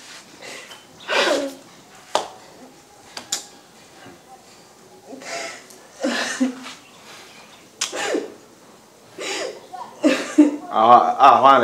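A woman groans and wails in distress.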